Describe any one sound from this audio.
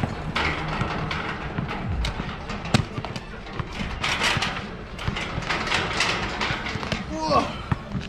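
A metal fence rattles and clanks.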